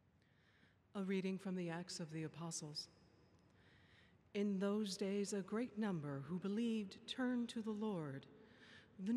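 A woman reads out calmly through a microphone in a large echoing hall.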